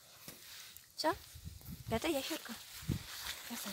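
Footsteps brush through grass.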